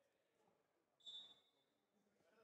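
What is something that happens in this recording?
A referee's whistle blows a short sharp blast in an echoing hall.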